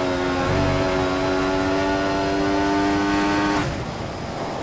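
A racing car engine screams at high revs, then cuts off abruptly.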